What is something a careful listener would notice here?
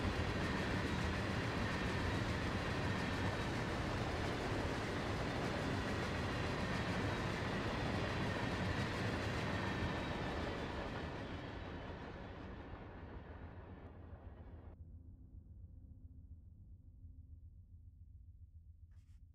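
A passenger train rumbles along the track and slowly fades into the distance.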